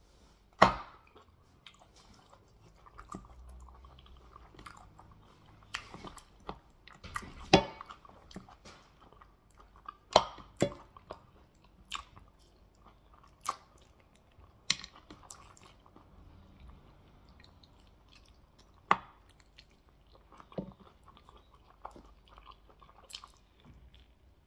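Meat squelches and tears between fingers.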